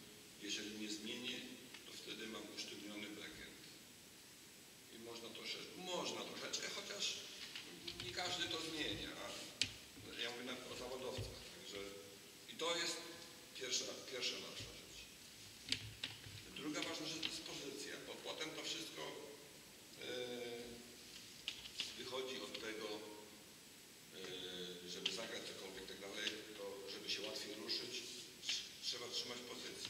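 A woman speaks with animation in a large echoing hall.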